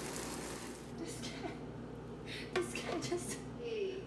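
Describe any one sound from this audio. A spoon scrapes food onto a tortilla.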